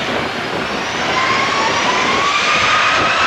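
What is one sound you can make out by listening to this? A jet engine whine rises in pitch as the engines spool up.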